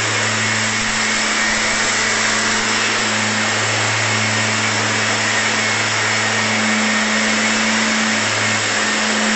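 A backpack sprayer engine drones loudly and steadily nearby.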